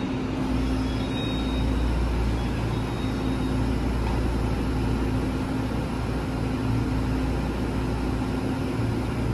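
A train's engine hums steadily and loudly close by.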